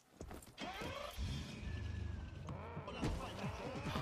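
A car engine rumbles.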